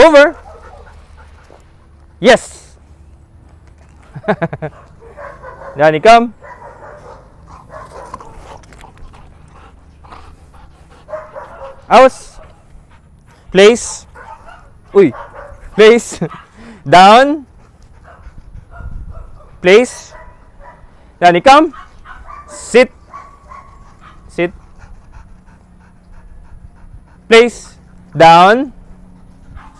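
A dog barks loudly and sharply, again and again.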